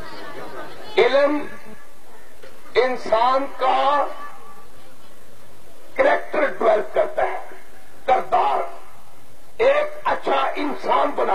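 A man shouts passionately into a microphone, heard through loudspeakers in bursts.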